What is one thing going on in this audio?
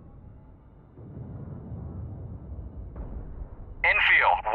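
An explosion rumbles low and deep.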